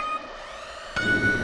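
A longer, higher start tone sounds.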